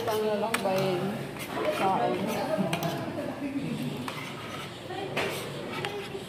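Metal cutlery scrapes and clinks on a plate.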